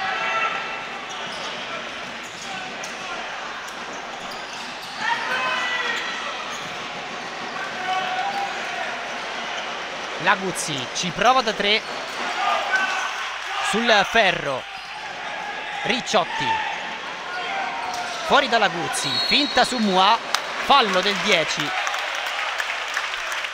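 A crowd murmurs and cheers in an echoing indoor hall.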